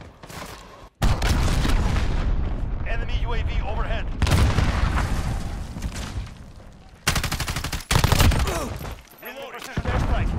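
Rapid gunshots fire in bursts, loud and close.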